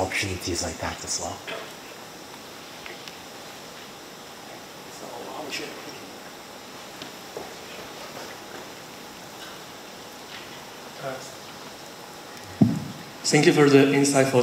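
A middle-aged man speaks through a microphone in a large hall, pausing often.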